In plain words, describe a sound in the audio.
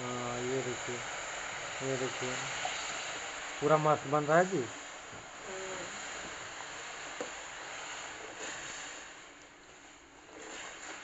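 Water pours in a thin stream into a hot pan.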